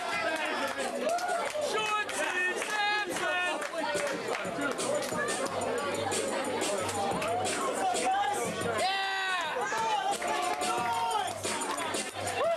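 A crowd of men and women chatters and calls out loudly.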